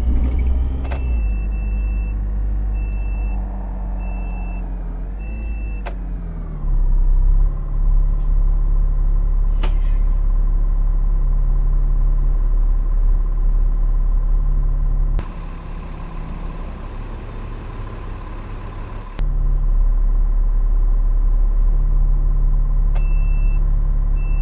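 A turn signal beeps at a steady pace.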